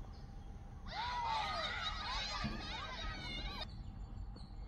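Young boys shout an appeal outdoors.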